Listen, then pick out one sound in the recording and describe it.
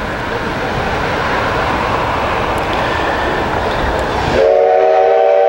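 A steam locomotive hisses loudly nearby.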